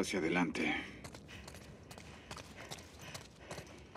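Footsteps fall softly on a wooden floor indoors.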